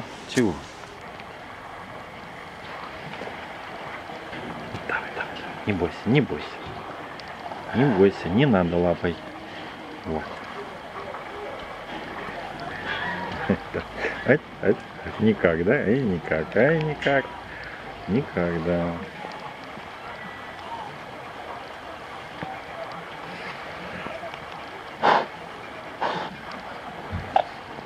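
A bear sniffs and snuffles close by.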